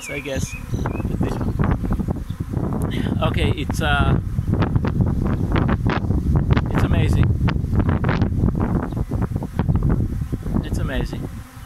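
Wind rumbles across the microphone outdoors.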